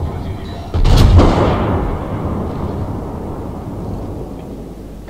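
A heavy shell explosion booms and rumbles away.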